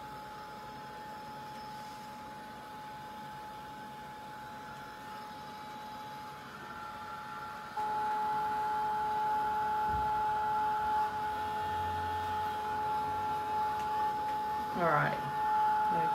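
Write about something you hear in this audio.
A heat gun blows with a steady, high-pitched whine that grows louder partway through.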